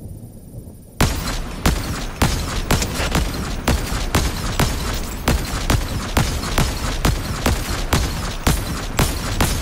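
Rifle shots fire in rapid succession.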